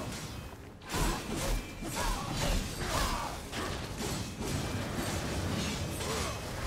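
Sword blows clash with sharp metallic hits.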